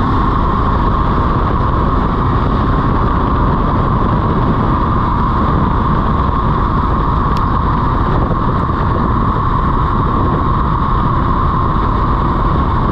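Tyres roar steadily on rough asphalt close by.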